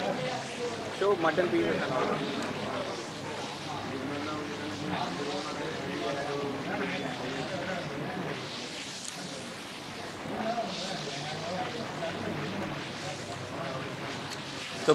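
A young man talks calmly and close into a clip-on microphone.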